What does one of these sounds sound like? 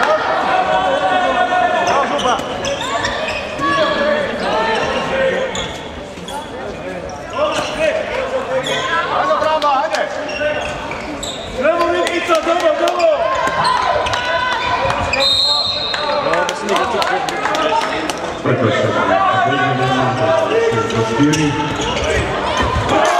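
A ball bounces on a hard floor in an echoing hall.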